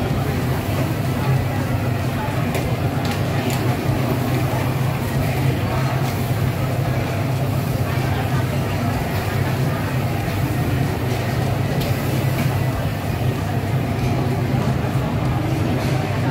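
A gas burner roars steadily.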